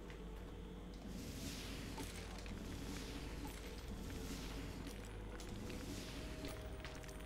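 Magic whooshes and shimmers.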